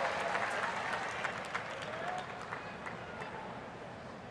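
A large crowd cheers and claps loudly, then dies down.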